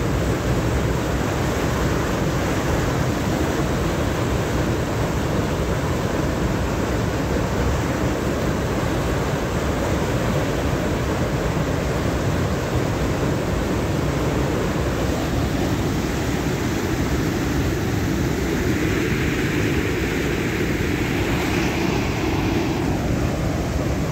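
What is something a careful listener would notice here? Water pours over a weir and churns loudly, with a steady rushing roar outdoors.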